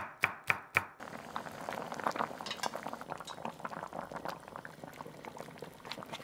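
Water bubbles and simmers in a pot.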